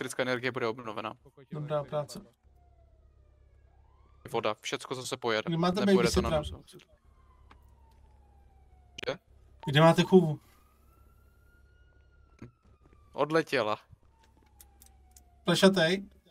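A man talks with animation, close to a microphone, in short bursts.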